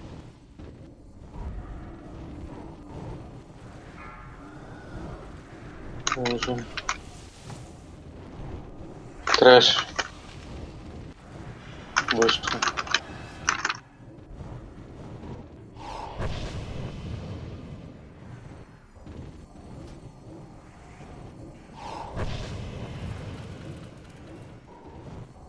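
Magic spells crackle and burst in a noisy battle.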